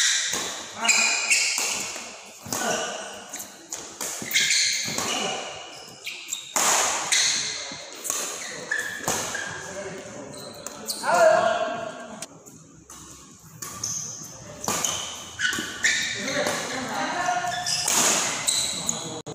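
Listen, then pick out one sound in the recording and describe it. Badminton rackets strike a shuttlecock in an echoing hall.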